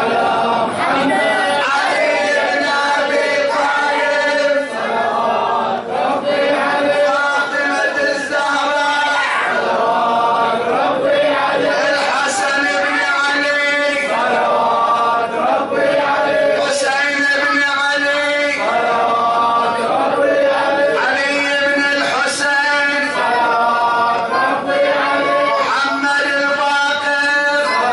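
A group of men chant along together.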